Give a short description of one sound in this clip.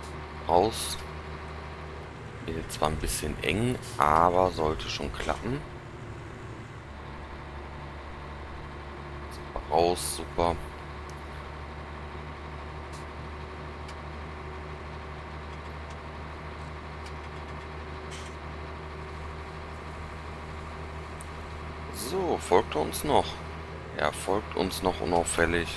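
A heavy truck's diesel engine hums as it drives along a road.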